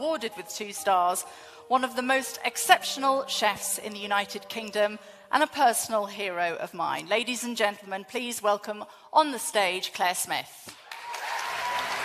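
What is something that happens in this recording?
A woman announces into a microphone with animation.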